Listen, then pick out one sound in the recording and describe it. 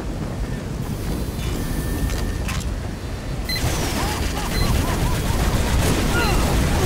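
Gunfire rattles in a video game battle.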